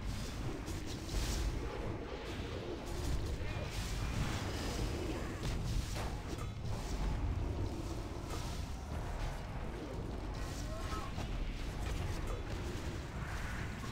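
Spell effects and weapon hits crackle and clash in a fantasy game battle.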